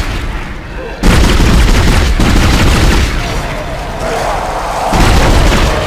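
A gun fires in rapid, loud bursts.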